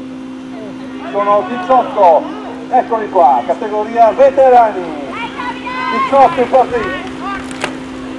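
Spectators shout and cheer outdoors.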